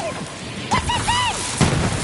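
Electric zaps crackle.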